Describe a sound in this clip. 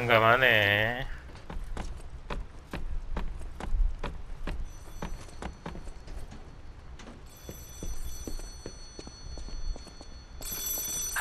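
Footsteps clatter quickly on a hard floor.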